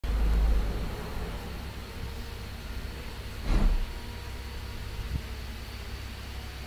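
A young woman talks quietly close to a microphone.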